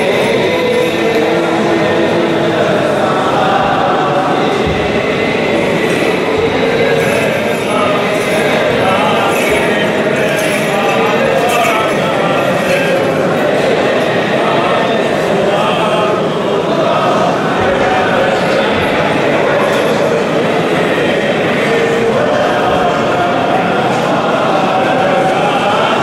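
Men's voices chant together, echoing in a large stone hall.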